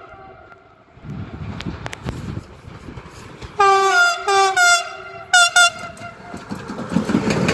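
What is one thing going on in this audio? An electric train rumbles closer along the tracks.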